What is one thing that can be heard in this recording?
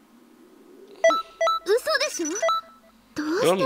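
Short electronic menu chimes beep several times.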